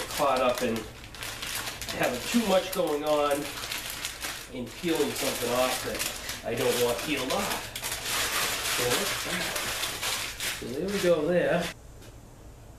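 A plastic sheet rustles and crinkles.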